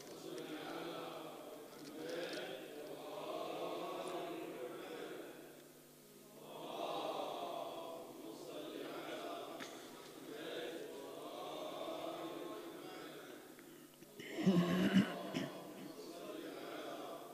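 A man speaks slowly and mournfully into a microphone in an echoing hall.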